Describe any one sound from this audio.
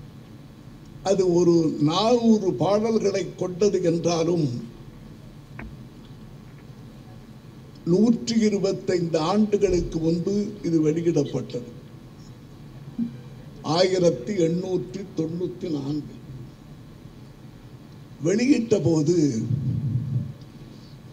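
An elderly man speaks into a microphone in a calm, deliberate way, pausing between phrases.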